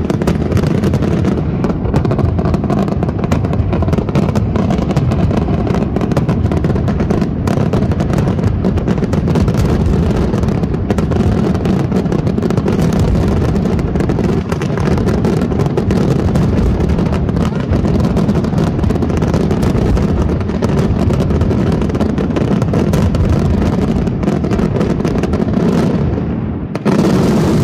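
Fireworks boom and crackle continuously in a loud, rumbling barrage.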